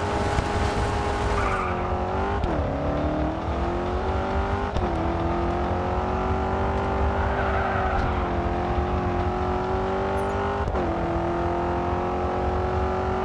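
A V8 muscle car engine roars as it accelerates and shifts up through the gears.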